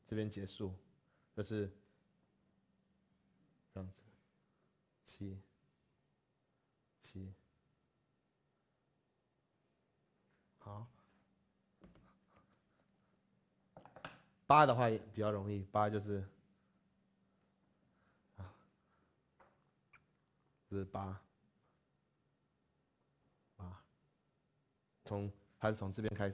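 A man speaks calmly in short phrases through a clip-on microphone.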